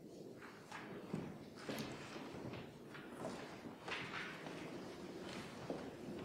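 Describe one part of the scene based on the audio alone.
Footsteps shuffle on a wooden floor.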